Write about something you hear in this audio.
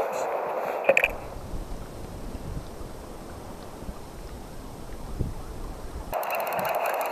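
Wind rumbles outdoors over open water.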